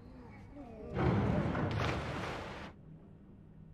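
A floor breaks apart with a loud crash.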